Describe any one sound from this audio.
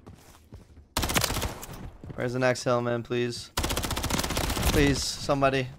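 Rapid gunfire rattles from a game.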